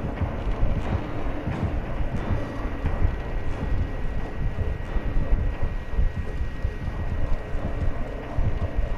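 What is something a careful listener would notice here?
Footsteps walk steadily over hard ground.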